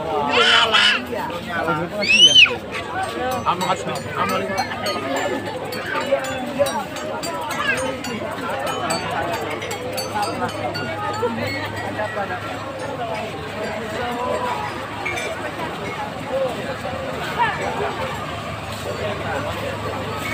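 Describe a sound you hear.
A dense crowd of people chatters outdoors.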